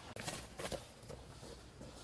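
Rubber boots thud on a dirt path.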